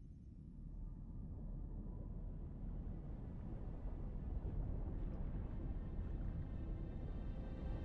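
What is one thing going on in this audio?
A deep underwater rumble grows louder as a submarine glides past.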